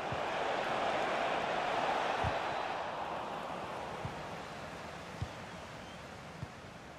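A stadium crowd roars and slowly quietens.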